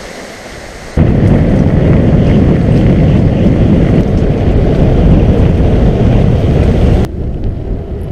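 Mountain bike tyres crunch on a gravel track.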